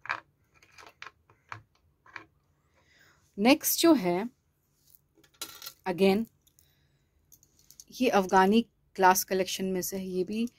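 Metal jewellery clinks softly as it is handled.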